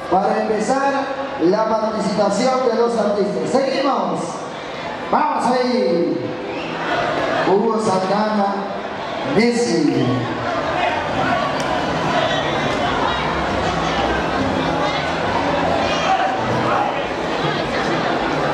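Shoes shuffle and tap on a hard floor as people dance.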